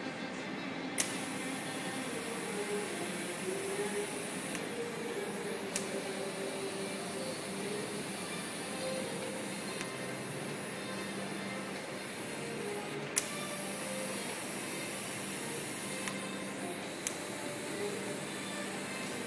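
A TIG welding arc hisses on stainless steel.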